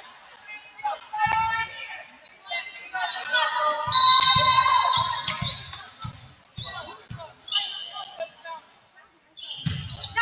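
Young women players shout calls to each other across the court.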